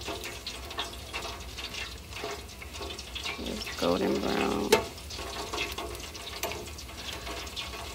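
Hot oil bubbles and crackles steadily.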